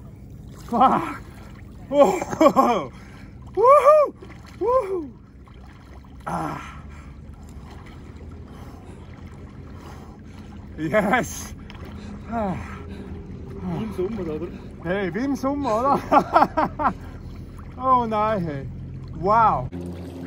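Water splashes softly around a swimmer.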